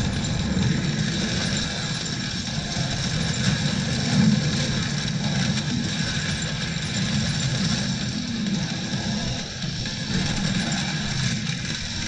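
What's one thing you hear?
Heavy guns fire in rapid, continuous bursts.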